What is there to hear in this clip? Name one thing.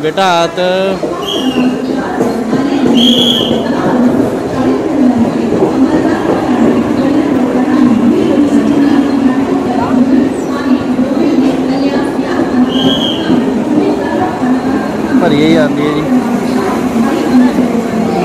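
A train rumbles and rattles past close by.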